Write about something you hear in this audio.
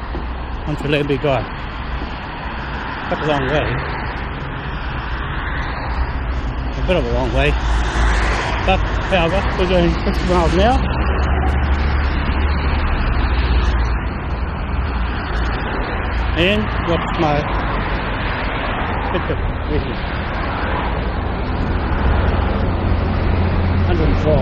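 Cars and trucks drive past on a busy road nearby.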